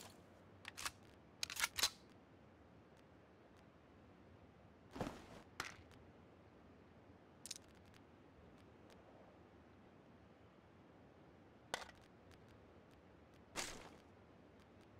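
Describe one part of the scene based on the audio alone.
Short clicks and rustles sound as items are picked up and moved.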